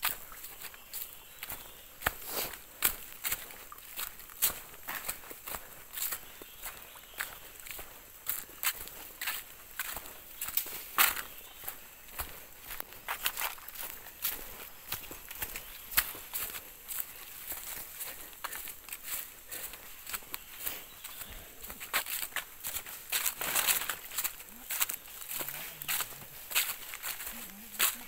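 Footsteps crunch and rustle on dry leaves.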